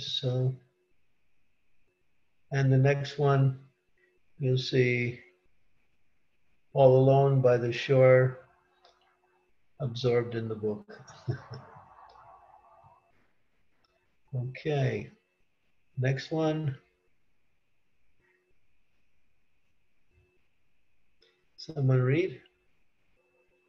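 An elderly man speaks calmly in short phrases, heard through an online call.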